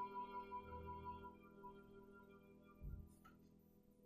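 A cello plays a slow, sustained melody.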